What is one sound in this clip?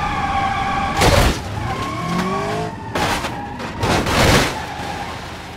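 Cars crash together with loud metallic crunches.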